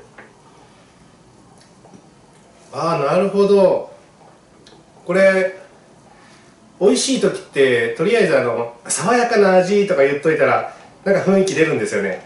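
A spoon clinks as it stirs a drink in a cup.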